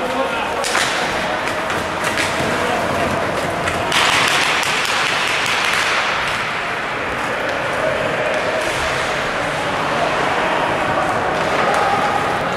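Hockey sticks click and clatter against the puck.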